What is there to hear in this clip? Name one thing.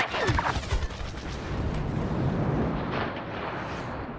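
A starfighter engine roars and whooshes past.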